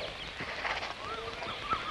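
A young woman laughs softly nearby.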